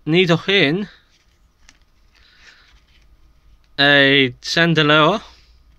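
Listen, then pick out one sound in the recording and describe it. Trading cards slide against each other in a hand.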